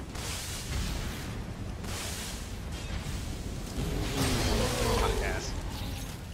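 Grappling gear whooshes and hisses through the air.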